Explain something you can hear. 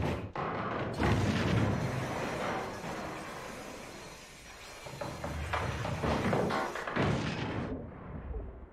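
Metal grinds and scrapes loudly, throwing sparks.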